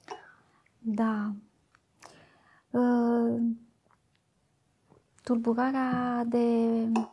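A middle-aged woman speaks slowly into a close microphone, drawing out her words.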